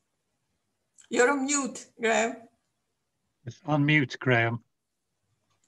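A middle-aged woman speaks over an online call.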